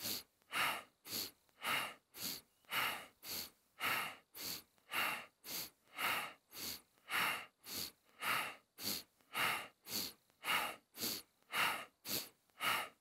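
A man breathes rapidly and forcefully in and out through his nose.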